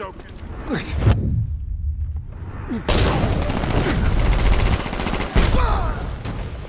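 Heavy punches and blows thud.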